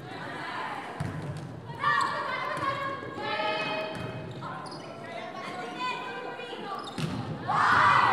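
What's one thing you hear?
A volleyball smacks against hands and arms.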